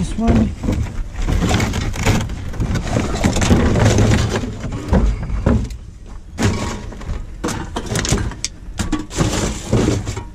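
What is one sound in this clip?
Plastic bottles and cans clatter and rattle as they are sorted by hand.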